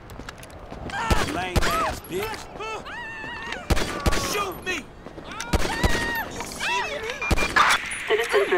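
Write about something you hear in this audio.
Pistol shots crack out sharply, several times.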